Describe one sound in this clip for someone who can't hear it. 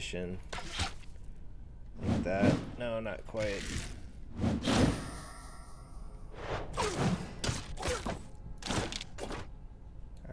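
Blades strike in quick fighting blows.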